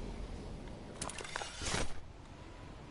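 A glider snaps open with a short flapping burst.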